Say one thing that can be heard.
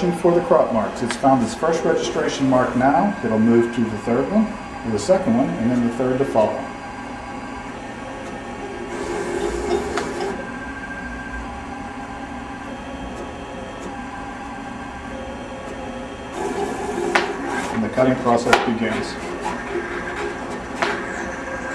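A cutting plotter whirs and buzzes as its head moves quickly back and forth.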